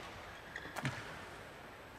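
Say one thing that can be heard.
A racket smashes a shuttlecock with a sharp crack.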